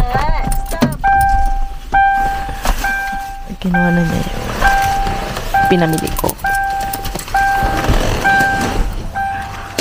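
A car's door-open chime beeps over and over at an even pace.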